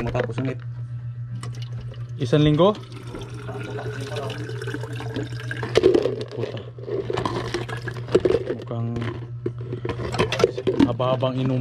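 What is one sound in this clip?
A plastic lid clicks and rattles against a plastic jug.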